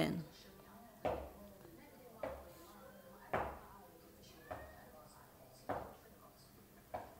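Feet thump softly on a floor at a steady pace.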